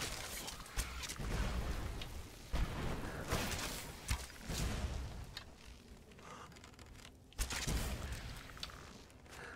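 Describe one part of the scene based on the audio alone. A fiery explosion roars and rumbles.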